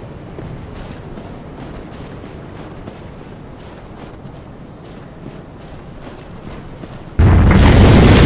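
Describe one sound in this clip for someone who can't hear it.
Heavy footsteps crunch steadily through snow.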